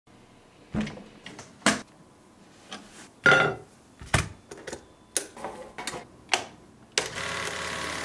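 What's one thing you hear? Reels and parts of a film projector click and clunk as they are handled.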